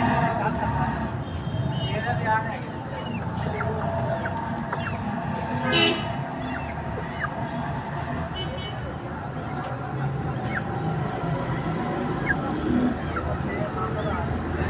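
Chickens cluck softly nearby.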